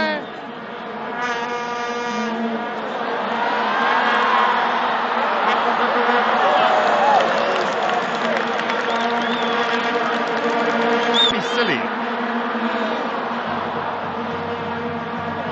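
A large crowd roars and cheers loudly in a vast open stadium.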